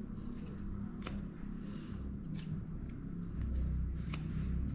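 Scissors snip sharply through dog fur, close by.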